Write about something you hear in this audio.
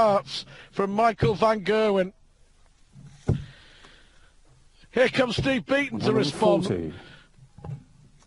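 A man calls out loudly, heard through a microphone.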